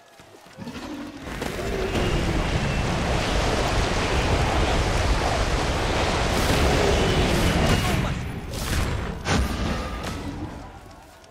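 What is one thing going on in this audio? A roaring whirlwind rushes and swirls loudly.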